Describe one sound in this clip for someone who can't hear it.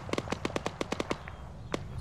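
A distant explosion booms and rumbles.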